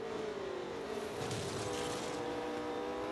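A racing car scrapes briefly against a trackside barrier.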